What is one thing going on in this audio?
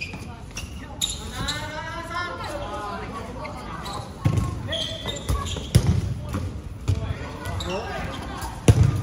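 Young people shout and call out in an echoing hall.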